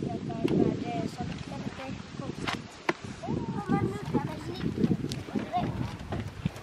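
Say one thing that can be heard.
A young child talks nearby in a high voice.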